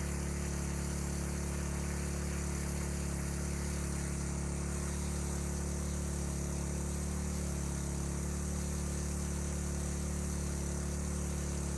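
A jet of water from a hose splashes steadily into a pool of water.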